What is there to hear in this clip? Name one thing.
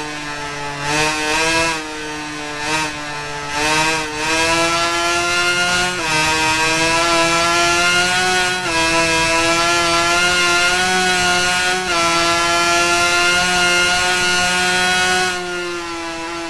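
A two-stroke 250cc racing motorcycle engine screams at high revs, shifting up through the gears.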